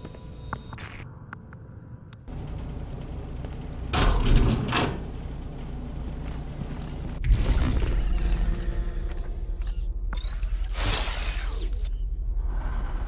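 A burst of harsh electronic static crackles.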